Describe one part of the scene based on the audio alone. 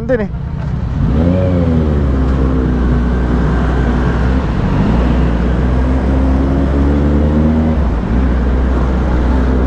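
A motorcycle engine revs and accelerates, humming steadily close by.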